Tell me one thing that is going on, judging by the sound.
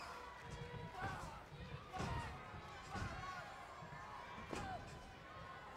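Wrestlers' blows thud in the ring.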